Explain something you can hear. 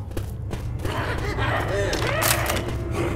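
Zombies snarl and growl close by.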